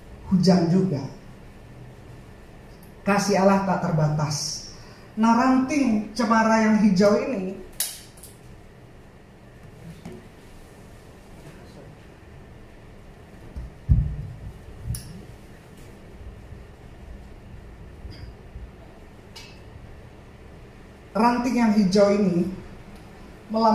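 A middle-aged woman sings into a microphone in short phrases, with pauses between them.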